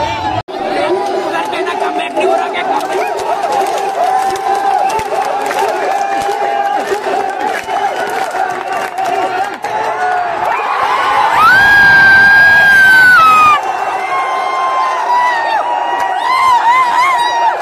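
A young man shouts excitedly close by.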